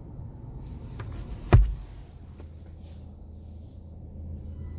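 Brushes thump and rub against a car.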